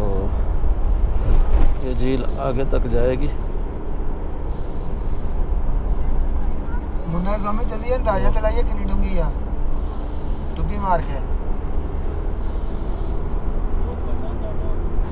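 A car drives along a road with a low, steady rumble.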